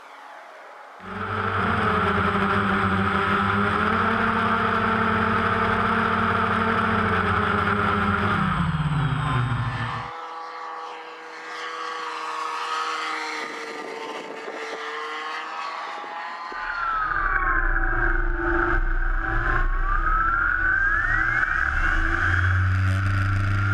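A model airplane's engine buzzes loudly, rising and falling in pitch.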